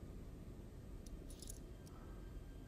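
Keys jingle briefly.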